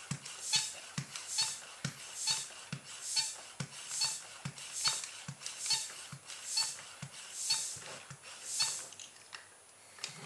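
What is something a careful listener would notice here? A hand pump squeaks and puffs in quick, even strokes.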